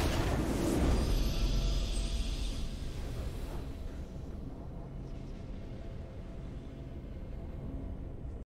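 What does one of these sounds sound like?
A triumphant victory fanfare from a video game plays and slowly fades.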